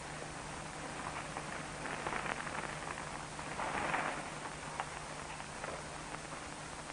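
A man speaks calmly, heard through an old, hissing recording.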